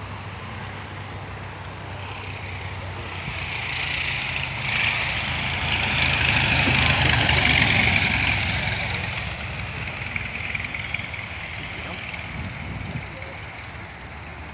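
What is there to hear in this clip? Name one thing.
A helicopter engine whines and roars in the distance, growing louder and then fading.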